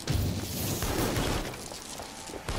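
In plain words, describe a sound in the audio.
A roaring burst of fire crackles and hisses.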